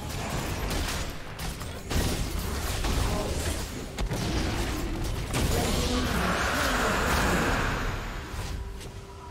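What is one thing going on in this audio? Game spell effects crackle and boom in a busy fight.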